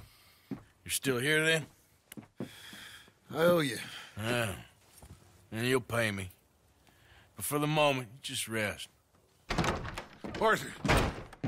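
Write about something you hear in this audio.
A man speaks slowly in a low, rough voice, close by.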